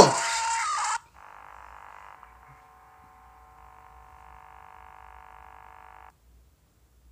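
Electronic static hums and hisses.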